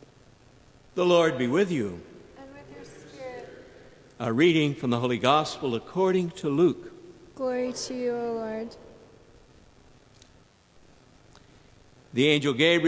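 An elderly man speaks slowly and calmly into a microphone in an echoing room.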